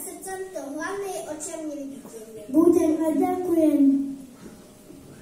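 A child speaks loudly through a microphone in a large echoing hall.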